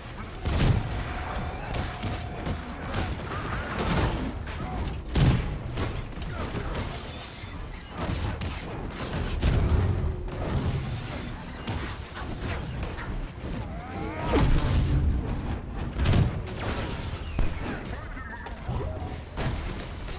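Magical blasts and impacts crash and boom repeatedly in a video game battle.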